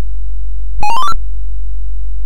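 An old computer game plays a quick rising electronic beep.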